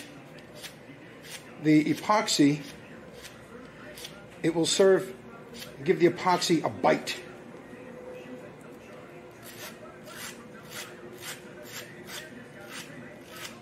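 Wire bristles scratch and rasp across a soft block.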